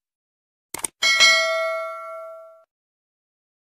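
A bell chimes and rings out.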